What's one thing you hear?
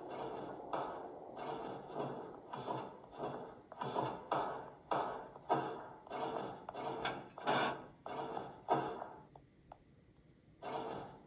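Footsteps thud at a steady walking pace, echoing in a tunnel.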